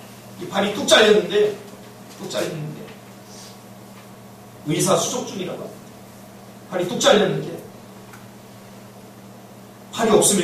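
A man preaches with animation into a microphone, in short bursts with pauses, in a room with some echo.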